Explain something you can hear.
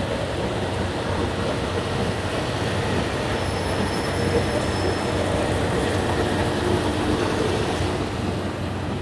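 A train rolls slowly past with a steady rumble and squeal.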